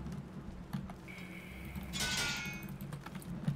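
Metal tools clink and clatter briefly during crafting.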